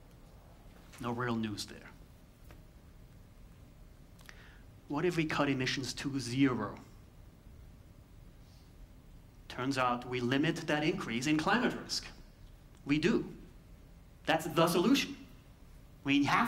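A man speaks calmly through a microphone in a large hall, with pauses between phrases.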